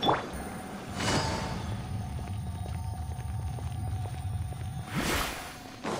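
Electric blasts crackle and whoosh in a fight.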